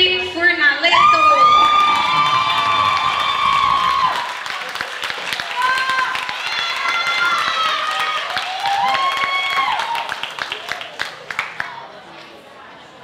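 A crowd claps in applause.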